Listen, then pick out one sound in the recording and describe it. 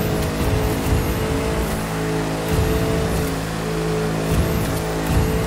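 A sports car engine roars steadily at high revs.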